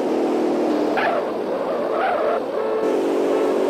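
Car tyres screech on the road.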